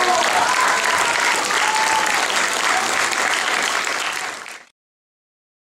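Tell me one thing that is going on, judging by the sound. An audience applauds and cheers loudly in a large hall.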